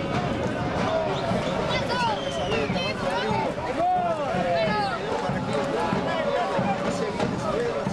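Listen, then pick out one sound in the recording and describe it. Spectators shout and cheer from a distance outdoors.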